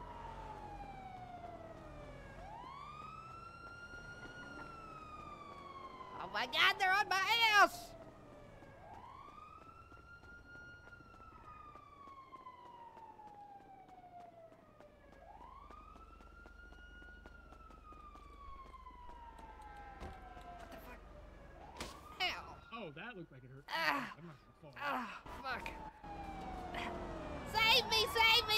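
A police siren wails and rises and falls nearby.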